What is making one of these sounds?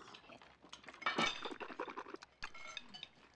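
A middle-aged man splutters and groans.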